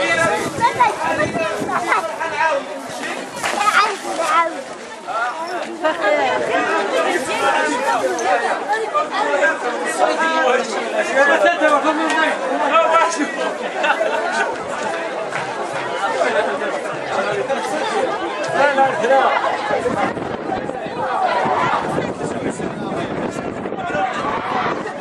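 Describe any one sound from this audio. A crowd of men and women talk and call out all around, outdoors.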